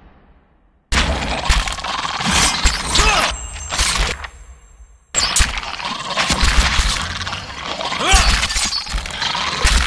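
Weapons clash and magic bursts in a noisy fight.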